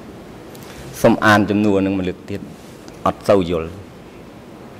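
A man speaks briefly into a microphone.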